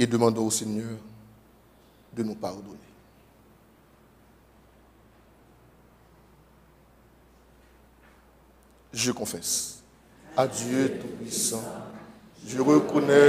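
A man speaks calmly into a clip-on microphone, with long pauses.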